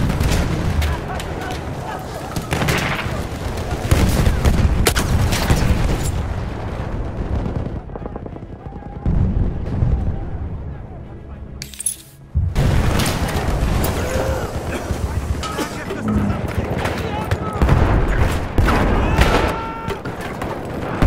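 Gunfire cracks and booms in rapid bursts.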